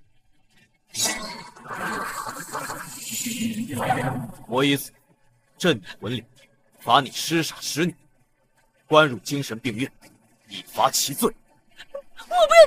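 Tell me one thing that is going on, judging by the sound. A young man speaks firmly and clearly nearby.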